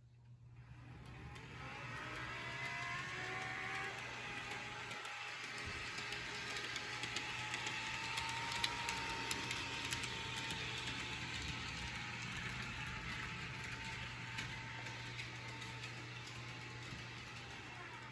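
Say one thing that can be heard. A model train rumbles and whirs along its track.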